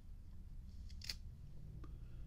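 A metal lighter lid clicks open.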